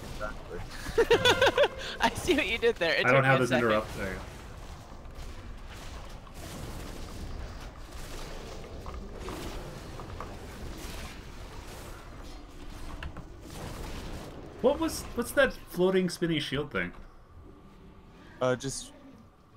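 Spell and combat effects from a game clash and whoosh.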